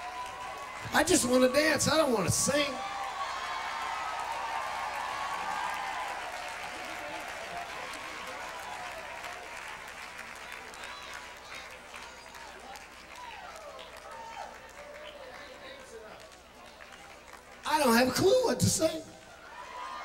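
A man sings loudly into a microphone in short bursts.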